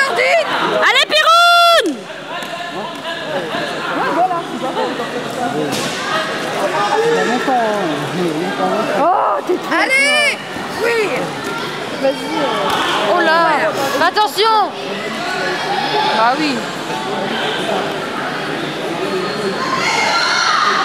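A crowd of spectators chatters and shouts in an echoing hall.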